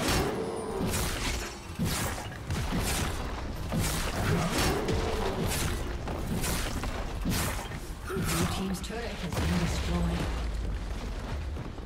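Spell blasts and weapon hits crackle and thump in a fast fight.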